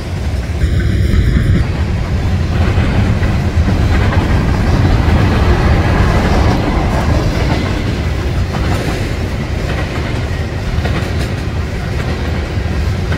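A freight train rumbles past close by, its wheels clattering steadily over the rails.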